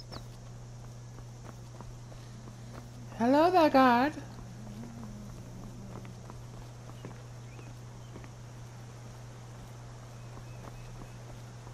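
Footsteps run on a stone path.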